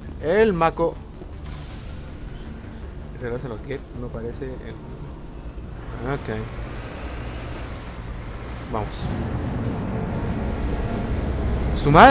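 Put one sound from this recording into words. An armoured vehicle's engine rumbles low as it drives.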